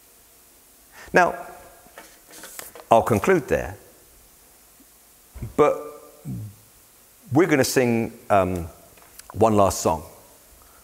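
An older man speaks with animation into a clip-on microphone, in a large echoing hall.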